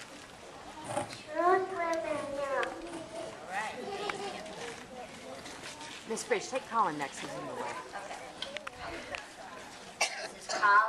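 Children chatter nearby outdoors.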